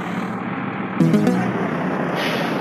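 A bus door hisses open with a puff of air.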